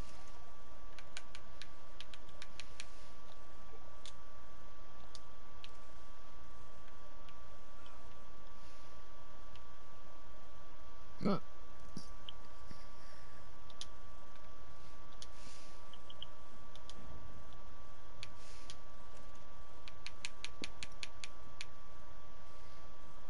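Menu clicks tick quickly.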